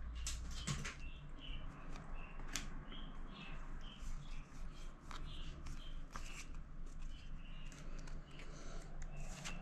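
Playing cards slide and tap against each other.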